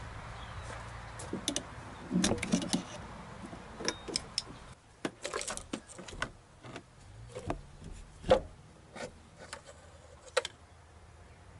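Metal tools and engine parts clink and knock close by.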